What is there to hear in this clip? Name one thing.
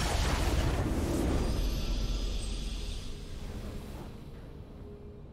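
A triumphant game fanfare swells as the match ends.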